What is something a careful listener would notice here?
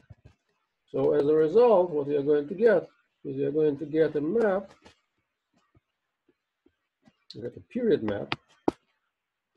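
A man speaks calmly over an online call, pausing between phrases.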